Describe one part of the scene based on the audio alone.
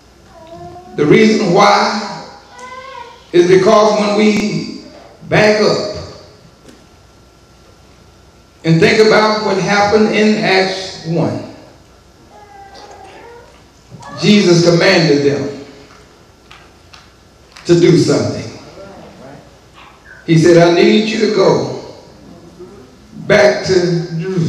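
A man preaches with feeling into a microphone, in bursts separated by pauses, heard through a loudspeaker in an echoing room.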